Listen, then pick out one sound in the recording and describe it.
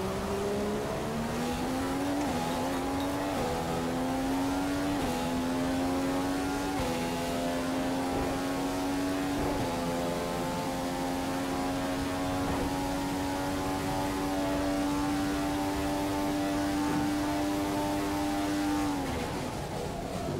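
A racing car engine screams as it accelerates through the gears, then drops in pitch as it slows.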